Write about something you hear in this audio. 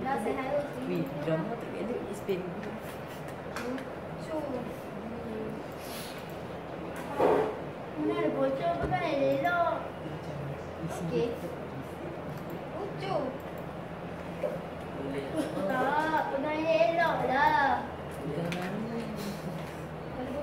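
Two young girls talk with each other nearby.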